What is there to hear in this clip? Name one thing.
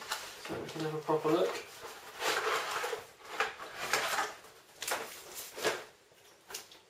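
A plastic tray scrapes and knocks against a wooden table.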